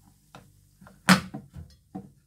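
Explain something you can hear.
A ceramic plate is set down on a hard glass surface with a clink.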